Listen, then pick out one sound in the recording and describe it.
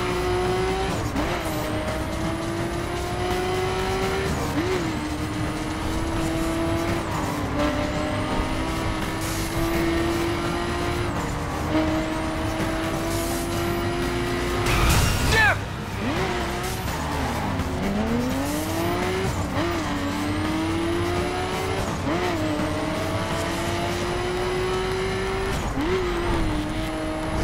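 Exhaust pops and backfires crackle from a car.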